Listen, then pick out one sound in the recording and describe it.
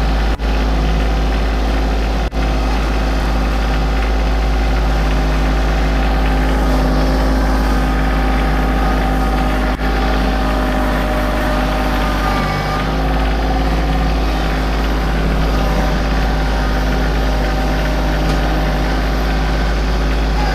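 A small tractor engine runs with a steady diesel rumble, close by.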